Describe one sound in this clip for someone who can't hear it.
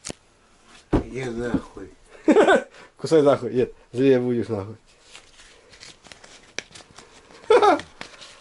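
A man speaks briefly and drowsily, close by.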